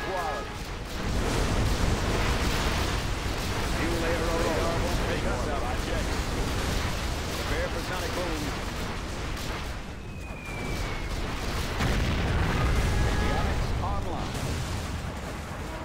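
Explosions rumble and boom.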